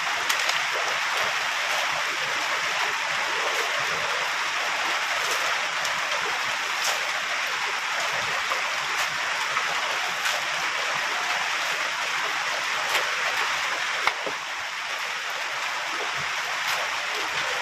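A metal shovel scrapes and digs into wet mud.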